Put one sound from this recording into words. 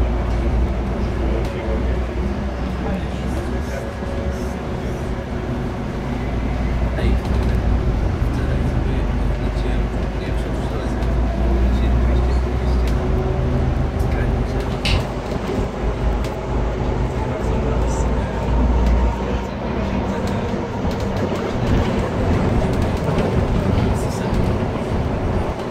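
A bus engine hums and drones steadily from inside the cabin.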